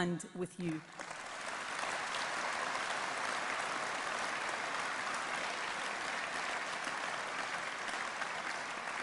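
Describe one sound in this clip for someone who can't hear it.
A large crowd applauds steadily.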